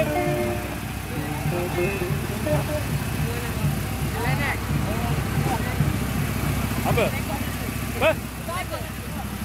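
A boy speaks with animation close by.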